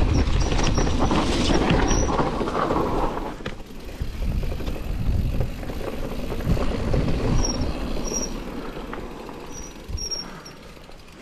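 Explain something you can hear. A bicycle's chain and frame rattle over bumps.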